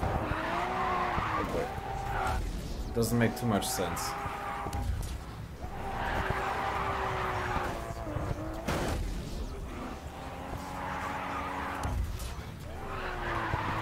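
Tyres screech as a car slides through a bend.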